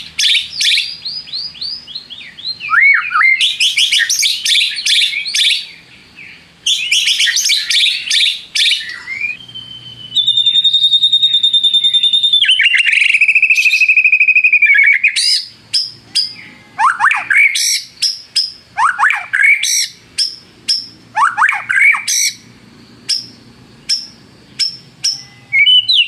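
A songbird sings loud, varied phrases of whistles, trills and chirps close by.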